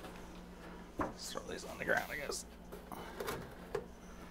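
A plastic tray scrapes and clatters onto a metal rack.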